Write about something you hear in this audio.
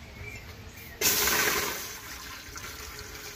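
Water pours and splashes into a metal pot.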